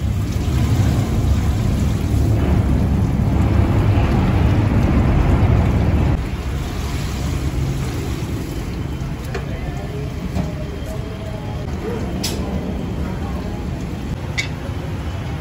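A metal ladle scrapes and knocks against a metal pot.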